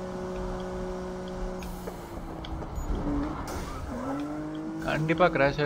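A racing car engine roars at high speed.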